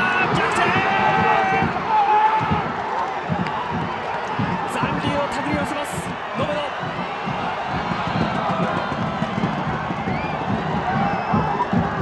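A large stadium crowd cheers loudly outdoors.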